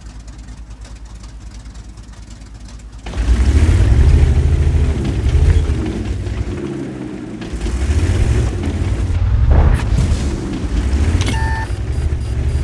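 A tank engine rumbles and roars as the tank drives.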